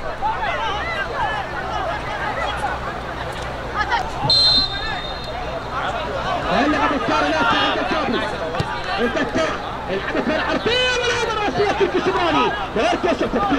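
Spectators cheer and call out from the sidelines.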